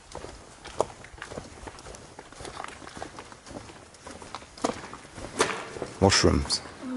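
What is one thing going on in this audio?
Footsteps crunch and scuff on a gritty concrete floor.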